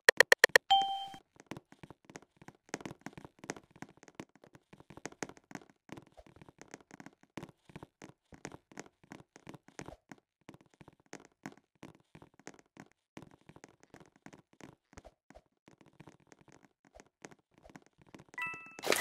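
Quick footsteps patter steadily across a hard floor.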